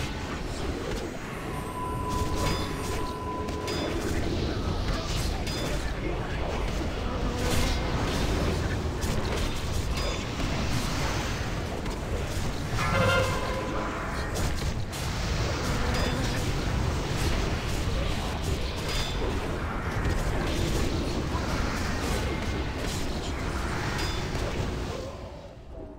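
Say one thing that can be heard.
Game weapons and spells clash and crackle in a busy battle.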